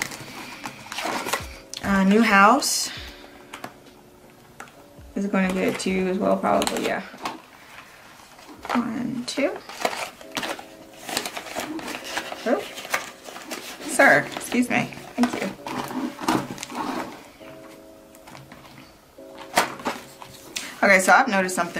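Plastic sleeves rustle and crinkle as they are handled.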